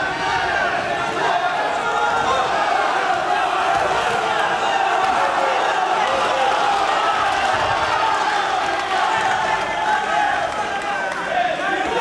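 A crowd cheers and shouts loudly throughout in a large echoing hall.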